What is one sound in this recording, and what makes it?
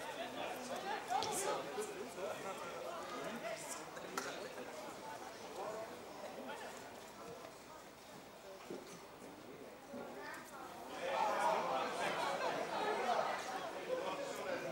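Distant players shout across an outdoor pitch.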